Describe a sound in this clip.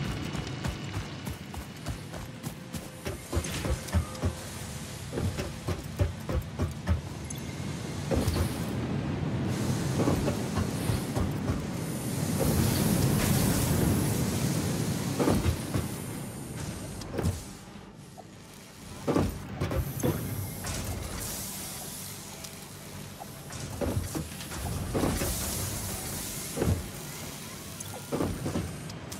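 Machines hum steadily nearby.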